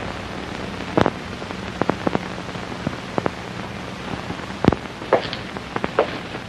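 Hard shoes click in footsteps on a tiled floor.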